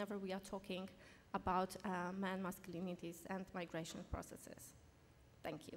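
A woman speaks calmly into a microphone in an echoing hall.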